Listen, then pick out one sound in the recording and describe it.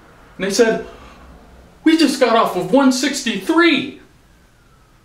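A man speaks with animation nearby.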